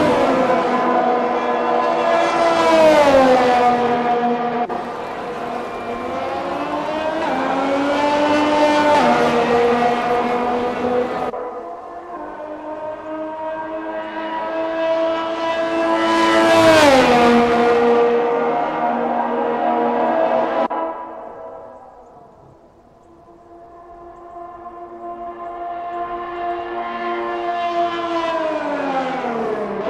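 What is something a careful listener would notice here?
Racing car engines whine at high revs and sweep past, their pitch dropping as they go by.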